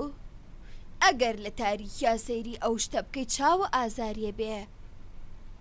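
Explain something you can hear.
An elderly woman speaks gently.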